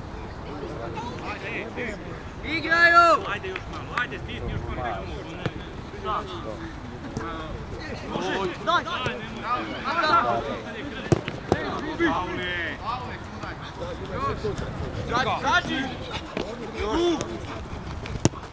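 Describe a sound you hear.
Young women on a field shout and call out to each other from a distance.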